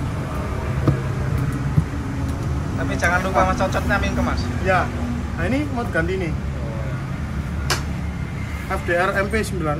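A rubber tyre rubs and squeaks as hands work it onto a wheel rim.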